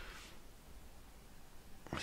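A metal spoon clinks against a ceramic mug.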